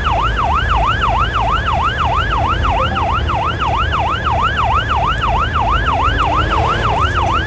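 A siren wails rapidly up and down, close by.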